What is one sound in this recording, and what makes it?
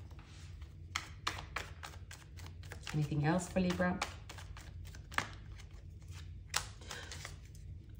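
Cards rustle and tap as they are handled.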